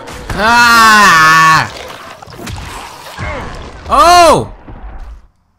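A young man shouts and yells with excitement into a microphone.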